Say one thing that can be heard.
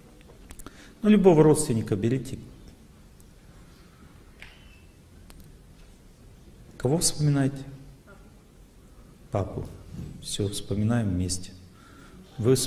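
A middle-aged man speaks calmly into a microphone in bursts, with pauses between.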